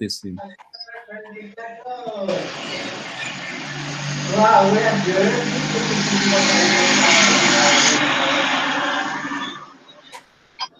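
A woman speaks over a noisy online call.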